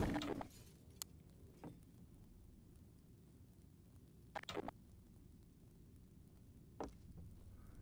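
A magic wand fires crackling spell blasts in a game.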